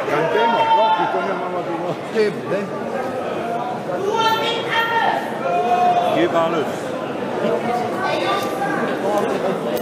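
Several men talk and call out over one another in a large, echoing hall.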